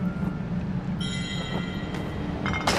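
A bright magical sparkle chimes.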